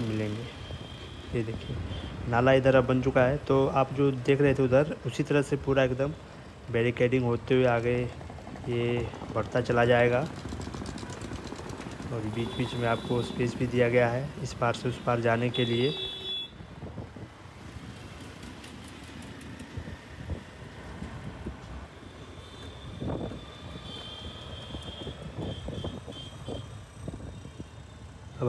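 A motor scooter engine hums steadily.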